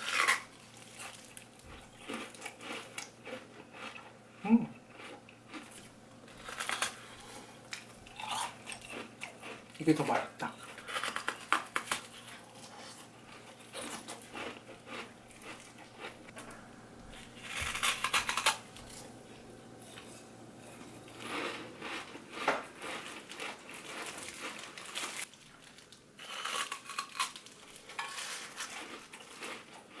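A plastic bag crinkles close by.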